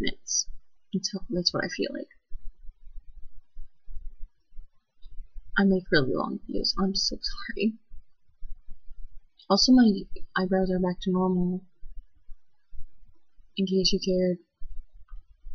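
A young woman speaks quietly and hesitantly, close to a microphone.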